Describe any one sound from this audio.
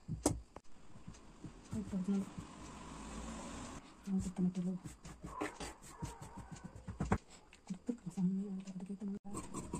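Fabric rustles as hands smooth and move it.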